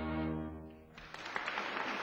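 A string ensemble plays a final held chord.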